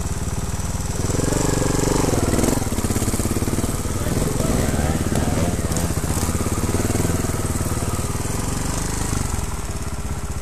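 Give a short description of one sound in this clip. A dirt bike engine revs hard as the bike climbs away, then fades.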